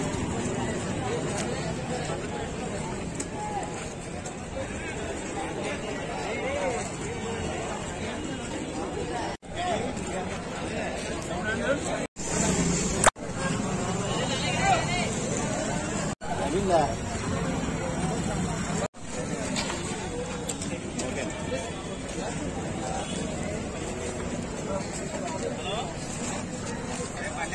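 A crowd of men chatter close by, outdoors.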